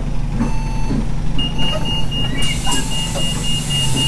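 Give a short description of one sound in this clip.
A bus door swings and thuds.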